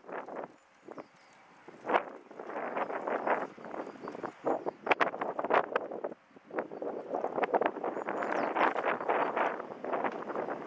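Small waves lap and slosh against a stone edge.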